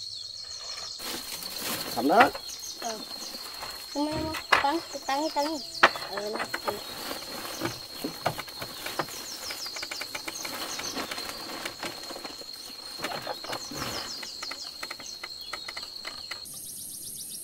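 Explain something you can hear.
Footsteps knock on a wooden ladder as a man climbs.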